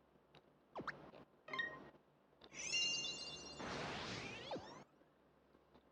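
Game menu chimes and clicks sound as choices are made.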